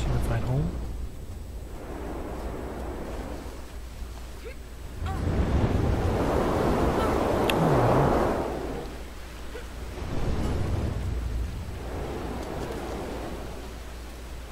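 Wind howls and gusts in swelling waves.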